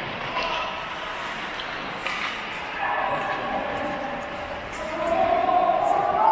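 Ice skates scrape and carve across the ice in an echoing indoor rink.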